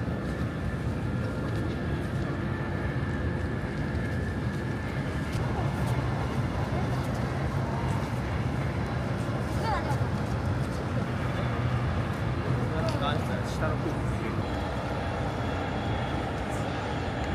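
Wind blows steadily across an open outdoor space.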